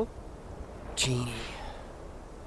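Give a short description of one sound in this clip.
A young man gasps in surprise.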